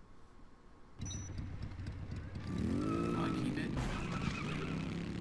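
A motorbike engine revs and hums.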